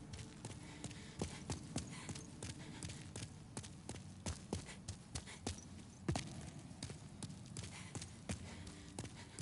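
Footsteps thud on stone at a steady running pace.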